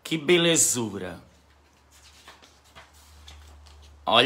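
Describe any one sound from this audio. A page of a sketchbook rustles as it is turned.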